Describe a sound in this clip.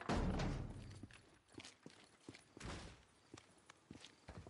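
Boots clank on a metal ladder, rung by rung.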